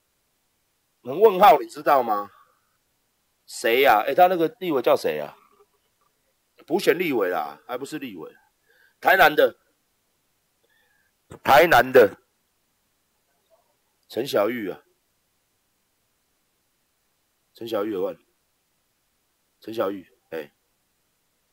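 A middle-aged man speaks close to a microphone in short bursts, with pauses.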